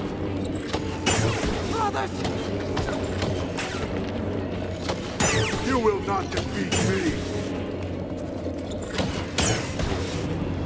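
A lightsaber swooshes through the air in quick swings.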